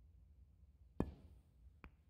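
A cue strikes a snooker ball with a sharp tap.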